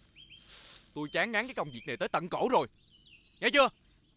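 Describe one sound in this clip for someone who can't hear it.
A man talks with animation outdoors.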